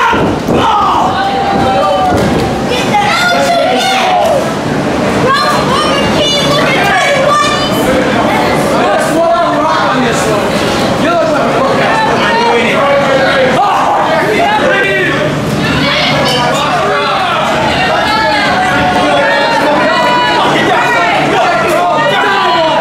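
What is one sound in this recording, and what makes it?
A small crowd of spectators shouts and cheers.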